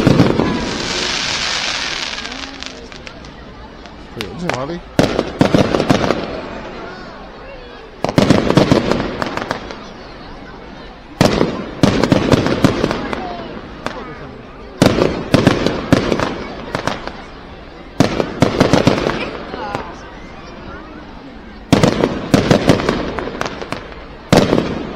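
Fireworks burst with loud bangs and crackle overhead, echoing off buildings.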